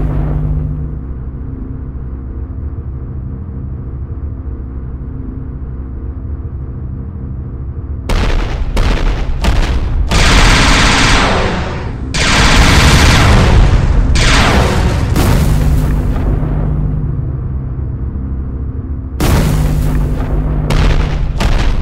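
A jetpack engine hums steadily.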